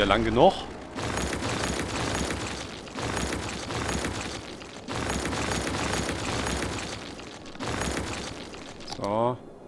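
A rumbling, crunching construction sound plays in bursts.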